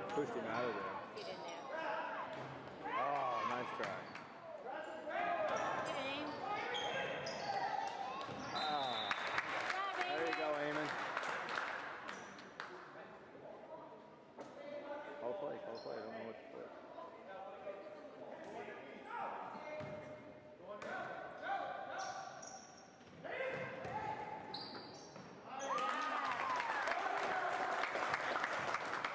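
Spectators cheer and shout loudly in an echoing gym.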